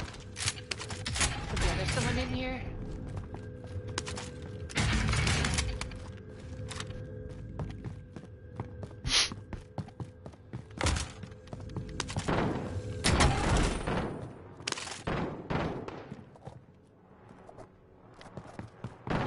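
Footsteps thud on a wooden floor.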